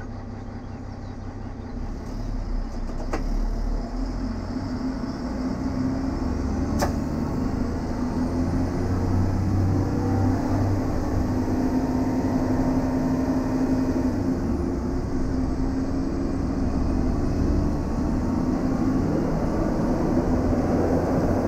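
A diesel railcar's engine pulls away and accelerates.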